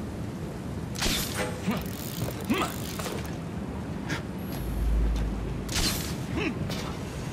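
A rope launcher fires and a cable whizzes.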